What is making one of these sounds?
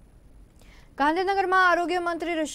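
A young woman reads out news calmly into a microphone.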